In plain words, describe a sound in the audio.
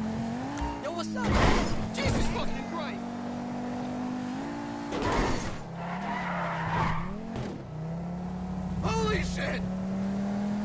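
Tyres screech on the road as a car takes sharp turns.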